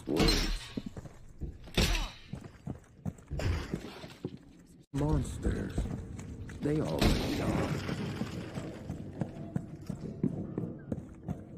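Footsteps thud on a hard floor.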